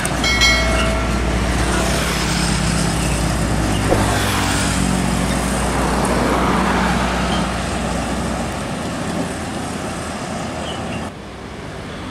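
A heavy truck engine rumbles steadily as it pulls away down the road.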